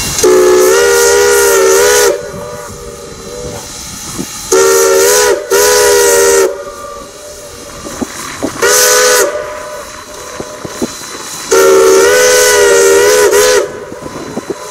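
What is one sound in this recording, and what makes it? A steam locomotive's whistle blows loudly in several long blasts outdoors.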